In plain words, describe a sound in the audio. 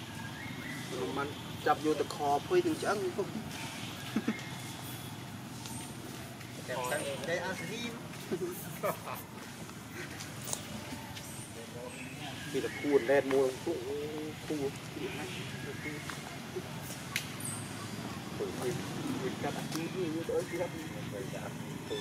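A baby monkey cries and squeals loudly in bursts.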